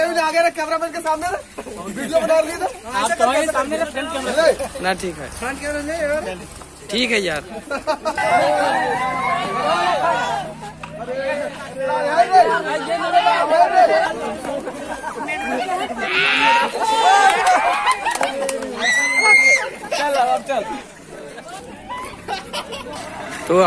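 Young men shout and cheer excitedly close by, outdoors.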